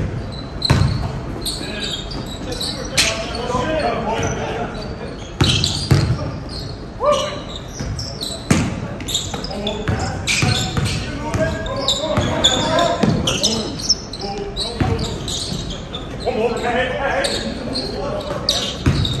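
Men shout and call out during play.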